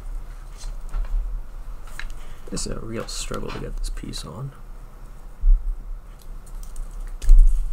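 Wires rustle softly as they are handled.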